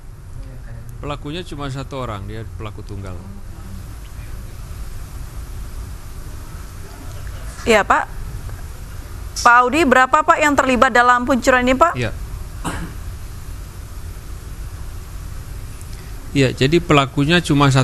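A man speaks calmly through a microphone, heard over a phone line.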